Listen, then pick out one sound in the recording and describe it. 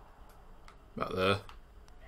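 A putter taps a golf ball softly.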